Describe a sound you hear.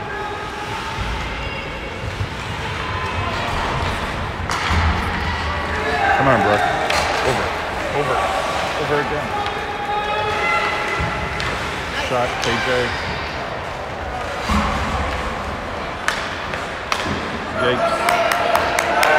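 Skates scrape and swish across ice in a large echoing arena.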